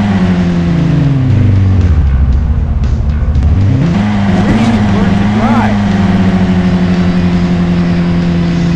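A car engine hums steadily, its pitch dropping as it slows and then rising again as it speeds up.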